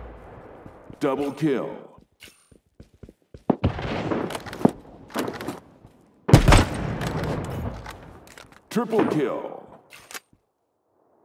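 A rifle bolt is worked with quick metallic clacks.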